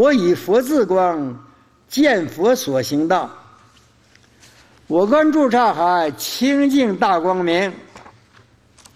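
An elderly man chants slowly into a microphone.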